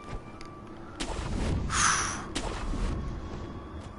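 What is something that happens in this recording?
A grappling rope whooshes sharply.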